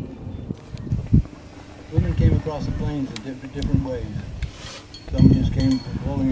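A man speaks calmly through a microphone outdoors.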